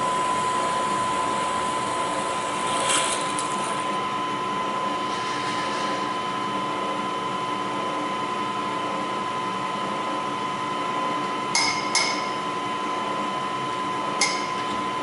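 A milling machine drills steadily into metal with a high whine.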